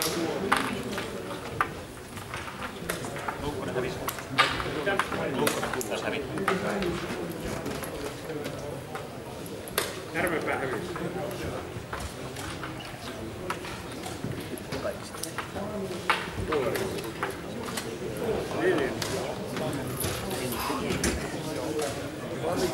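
A crowd of men murmurs and chatters in a large echoing hall.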